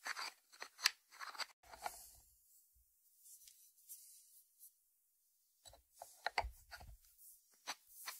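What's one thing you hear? A ceramic lid clinks and scrapes against a ceramic dish.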